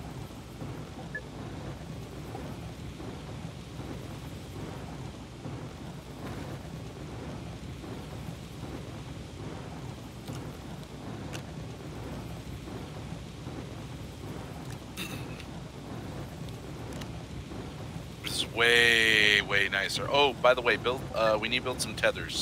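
A furnace roars with a steady low rumble.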